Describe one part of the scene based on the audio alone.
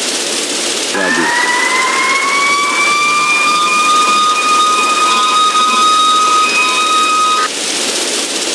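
A fire truck siren wails, rising and then holding steady before cutting off.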